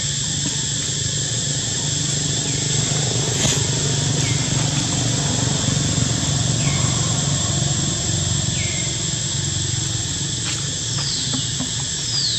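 A monkey's feet rustle faintly over dry leaves and dirt.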